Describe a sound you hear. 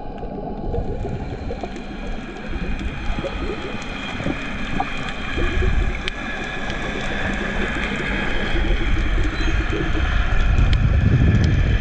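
Water rumbles and hisses steadily, heard from underwater, with faint crackling clicks.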